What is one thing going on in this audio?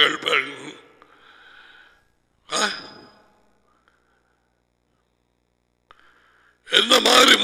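A middle-aged man speaks calmly in short bursts, close through a headset microphone.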